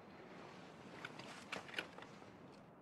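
A rifle clicks as a soldier handles it.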